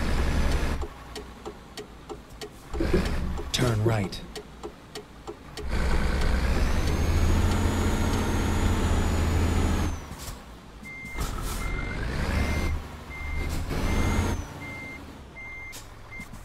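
A truck engine hums as the truck drives along a road.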